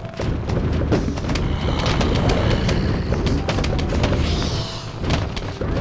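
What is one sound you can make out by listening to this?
Rapid cartoon game shots pop and thud in quick succession.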